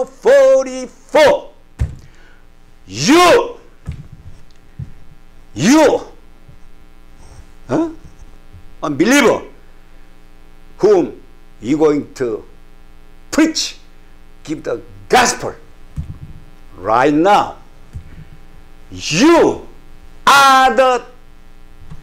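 An elderly man speaks with passion into a nearby microphone, in loud bursts with pauses.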